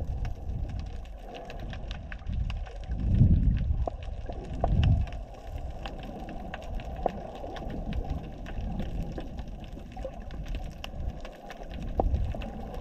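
Water rushes and rumbles in low surges underwater.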